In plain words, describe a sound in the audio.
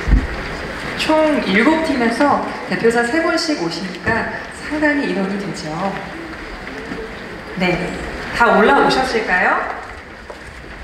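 A man speaks through a microphone and loudspeaker in a large echoing hall.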